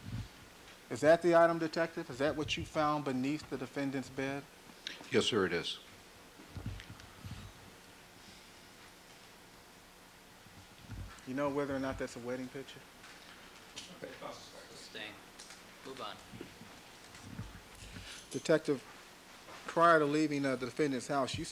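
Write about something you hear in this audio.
A man speaks calmly and deliberately into a microphone, with pauses.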